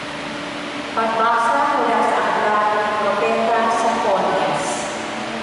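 A man chants through a loudspeaker in a large echoing hall.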